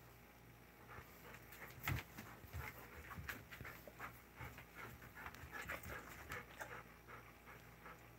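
Dog claws tap and scrape on a hard floor.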